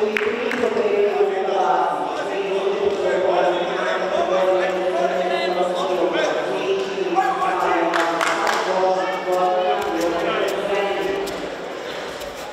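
Spectators in a large echoing hall chant and cheer loudly.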